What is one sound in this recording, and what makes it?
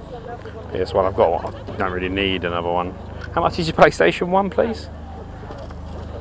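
People chat nearby in a busy outdoor crowd.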